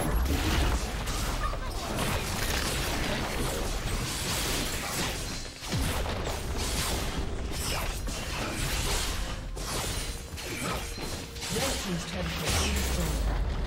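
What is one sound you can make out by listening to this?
Spell effects crackle and burst in a game battle.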